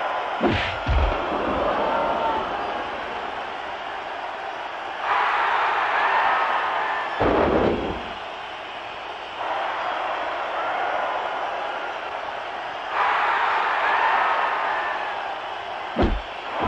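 Heavy thuds sound as bodies slam onto a wrestling mat.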